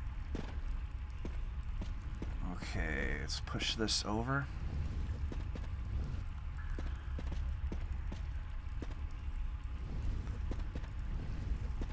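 Footsteps tread slowly across a hard, gritty floor.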